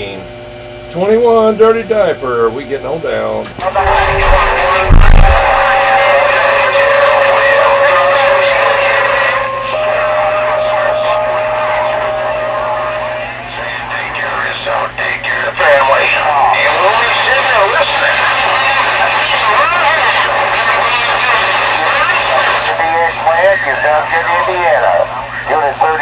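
A radio receiver hisses with static.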